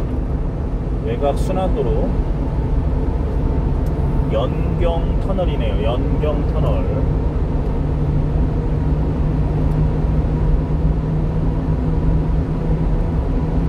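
A car engine hums steadily while driving through a tunnel.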